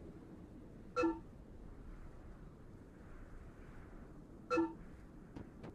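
Short electronic chimes ring as menu items are selected.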